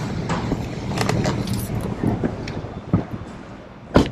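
Footsteps tap on a paved sidewalk.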